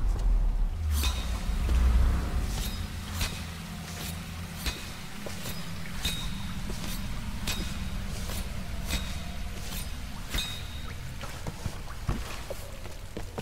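Footsteps crunch on loose stone at a steady walking pace.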